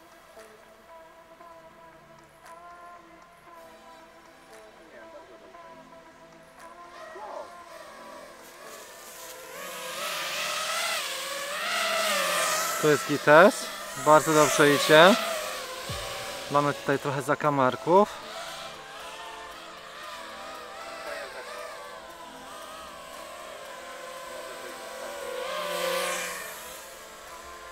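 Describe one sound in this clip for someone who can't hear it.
A small drone's motors whine steadily and rev up and down sharply.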